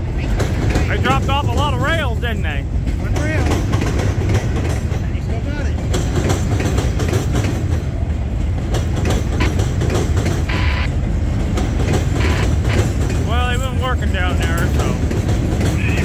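Train wheels squeal shrilly against the rails.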